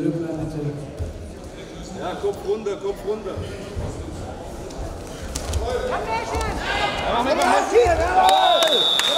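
Wrestlers' feet thump and shuffle on a mat.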